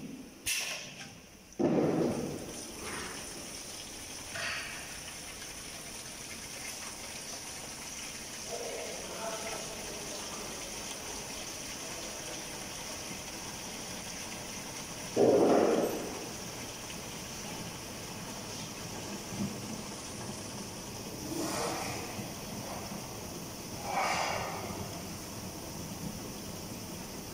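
A filling machine hums steadily.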